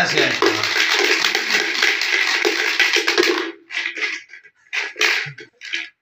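A man rattles dice in a plastic jug.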